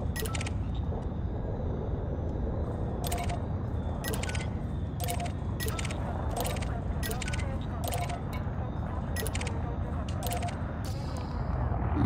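Short electronic menu clicks sound at a regular pace.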